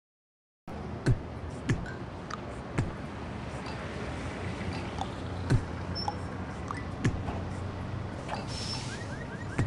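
Short cartoon pops sound as items drop into place.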